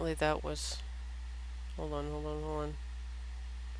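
A young woman speaks briefly into a headset microphone.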